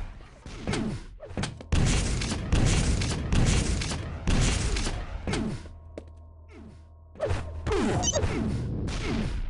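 A video game gun fires repeatedly with bursts of blasts.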